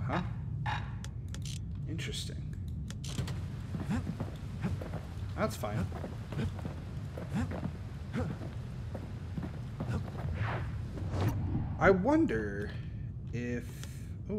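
A man talks casually into a microphone, close up.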